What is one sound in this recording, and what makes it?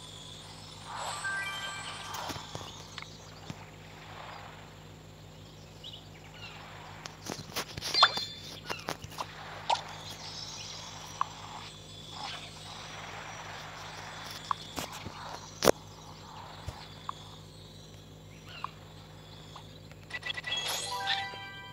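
Game menu chimes and taps ring out.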